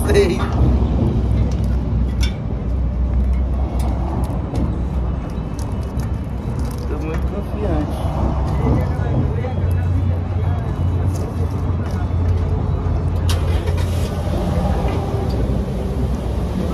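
Bike parts click and rattle as a man works on a bicycle.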